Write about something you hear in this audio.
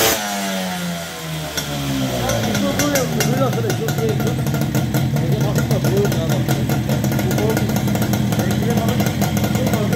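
A small two-stroke moped engine sputters to life and idles with a rapid, rattling putter close by.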